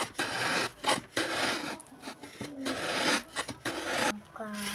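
Wet cloth is scrubbed hard against a wooden board in rhythmic strokes.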